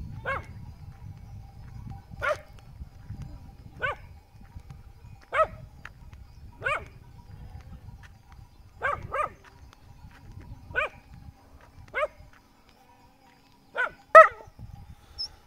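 A dog barks in the open air.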